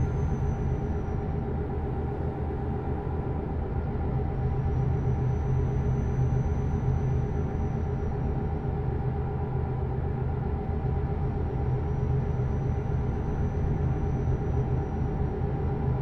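Tyres rumble over a snowy road.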